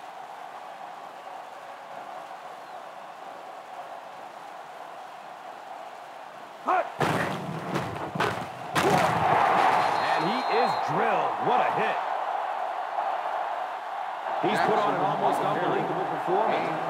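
A large stadium crowd murmurs steadily, then swells into a loud roar.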